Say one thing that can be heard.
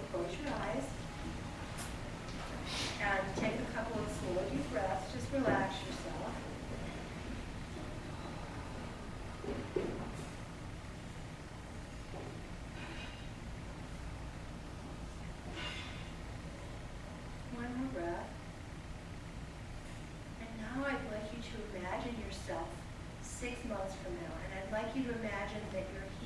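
A woman speaks calmly at a distance, pausing between phrases.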